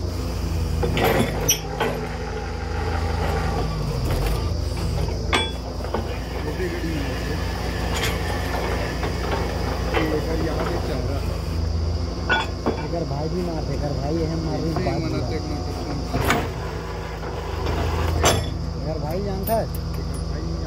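Metal drill parts clank sharply now and then.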